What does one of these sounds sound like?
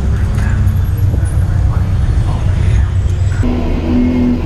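Race car engines rumble nearby.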